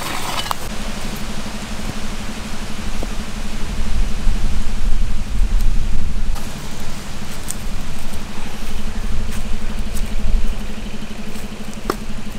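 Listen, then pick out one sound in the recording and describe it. Bricks knock against each other.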